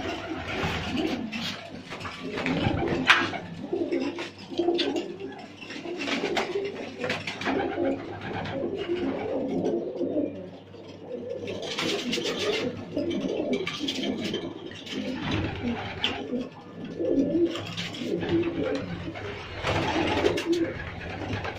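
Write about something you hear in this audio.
Pigeon wings flap and clatter in sudden bursts.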